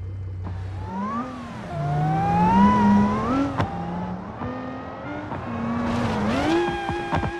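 A car engine revs up and down, rising in pitch.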